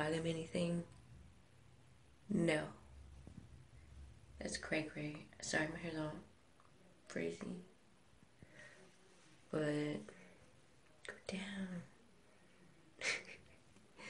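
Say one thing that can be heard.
A young woman talks close up, with animated pauses.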